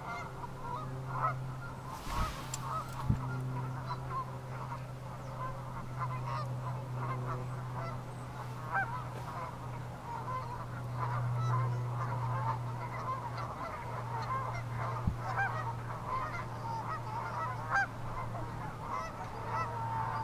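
A flock of Canada geese calls and honks.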